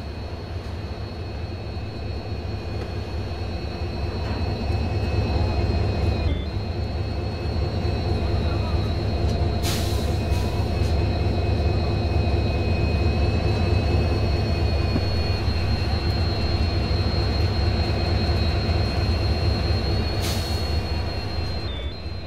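A diesel locomotive engine rumbles and drones steadily close by.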